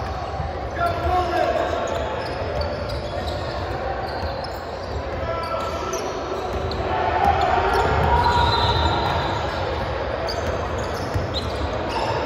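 A crowd of young people chatters in a large echoing gym.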